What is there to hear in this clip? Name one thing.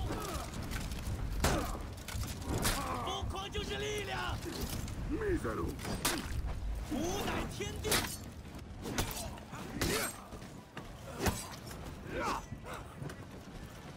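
Metal weapons clash and strike armour.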